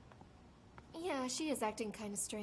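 A young woman answers calmly up close.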